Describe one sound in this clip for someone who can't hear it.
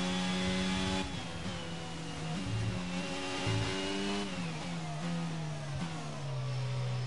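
A racing car engine drops in pitch as it slows and shifts down.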